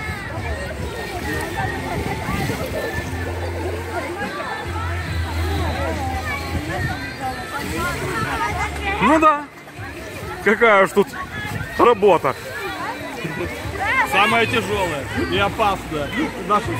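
A crowd of adults and children chatters and calls out outdoors.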